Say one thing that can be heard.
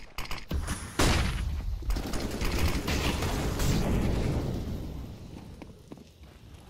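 A smoke grenade hisses loudly close by.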